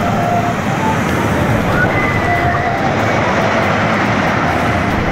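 A wooden roller coaster rumbles and clatters along its track.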